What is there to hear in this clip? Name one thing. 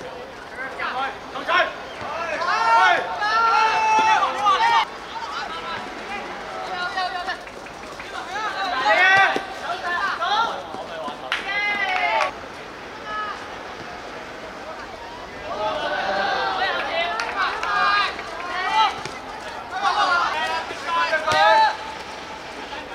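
Teenage boys shout to each other across an outdoor pitch.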